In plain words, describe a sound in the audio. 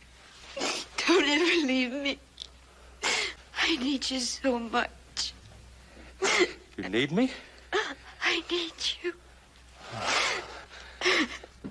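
A young woman sobs and cries.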